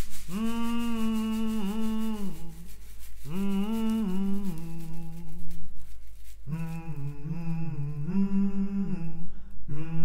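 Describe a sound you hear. Hand drums are struck with sticks in a quick, steady rhythm.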